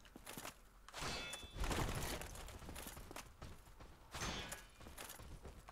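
A sword swings with loud whooshes and clashes.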